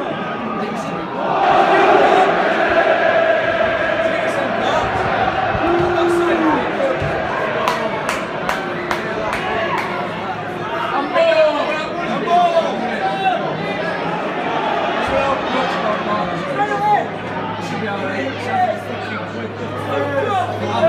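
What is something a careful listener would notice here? A large stadium crowd chants and sings loudly outdoors.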